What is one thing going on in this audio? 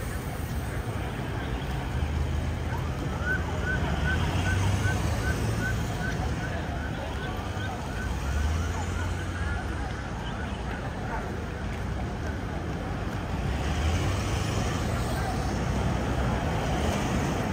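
Tyres roll over pavement.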